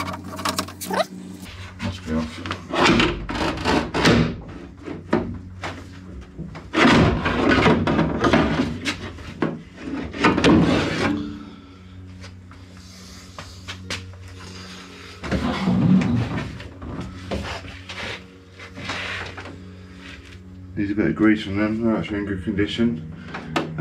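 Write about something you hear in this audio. Metal parts clink and knock against a car door.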